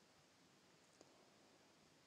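A metal lid clicks onto a glass jar.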